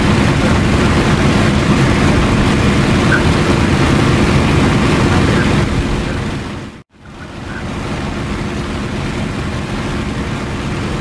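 Wind rushes past an aircraft's cockpit.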